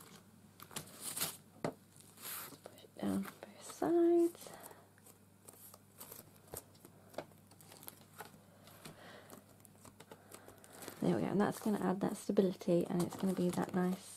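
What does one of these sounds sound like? Fingers brush and scratch over ridged cardboard.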